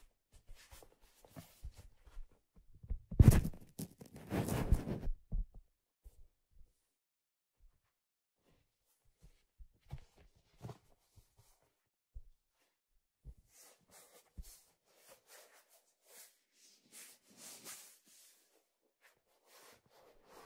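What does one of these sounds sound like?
Hands tap and scratch on a stiff hat brim close to a microphone.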